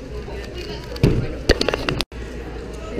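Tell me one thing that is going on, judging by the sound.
A puzzle cube is set down with a knock on a mat.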